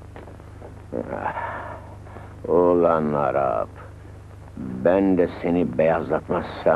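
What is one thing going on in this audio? A man groans and cries out in pain, close by.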